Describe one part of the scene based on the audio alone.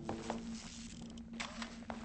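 An electric charge crackles and buzzes.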